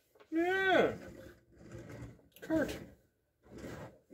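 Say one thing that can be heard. Small plastic wheels roll across a table.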